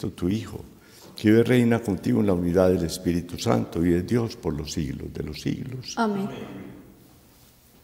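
An elderly man sings a chant through a microphone.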